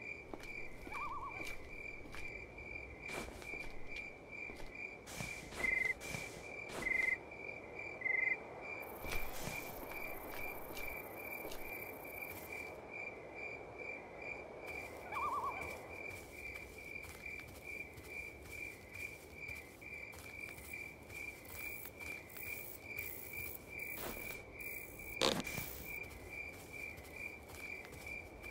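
Footsteps tread steadily and evenly.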